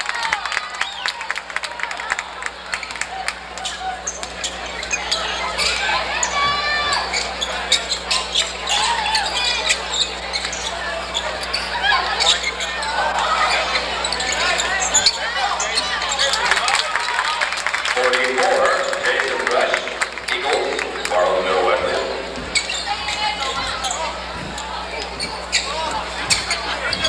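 A crowd cheers and shouts throughout a large echoing gym.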